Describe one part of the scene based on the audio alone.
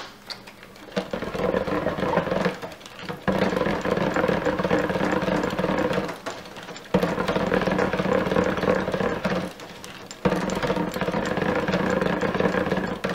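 An immersion blender whirs in bursts, churning thick liquid in a pot.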